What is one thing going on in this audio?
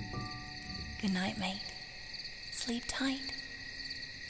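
A young woman speaks softly and warmly close by.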